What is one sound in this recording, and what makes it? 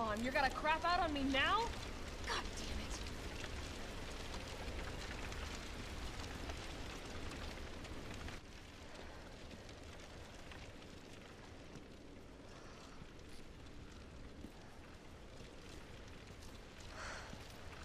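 Fire crackles nearby.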